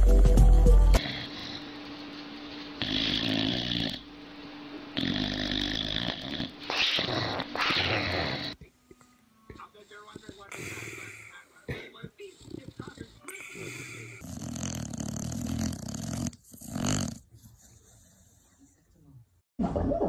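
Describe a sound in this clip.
A dog snores loudly in its sleep.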